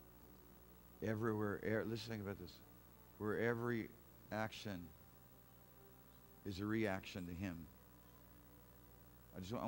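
A man speaks calmly and clearly to an audience, heard through a microphone in a large room.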